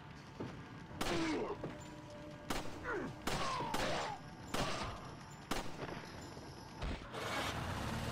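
Pistol shots crack sharply, one after another.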